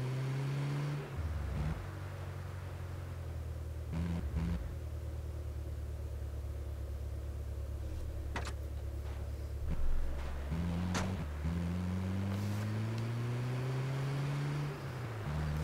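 A vehicle engine hums steadily and revs up and down.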